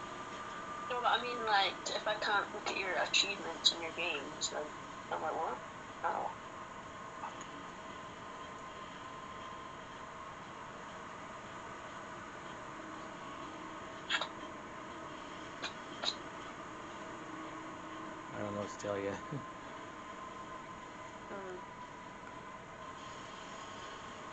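Electronic game sounds play from a television speaker.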